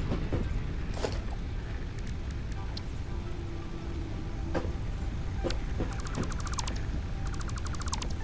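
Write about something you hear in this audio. Menu clicks tick quickly.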